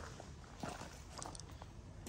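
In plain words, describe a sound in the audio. Footsteps crunch on gravel nearby.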